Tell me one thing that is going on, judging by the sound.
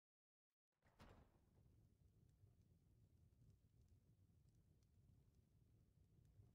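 A fire crackles in a hearth.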